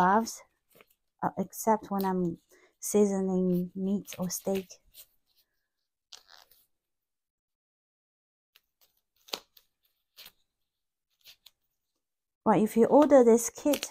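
Latex gloves rustle and snap as they are pulled on.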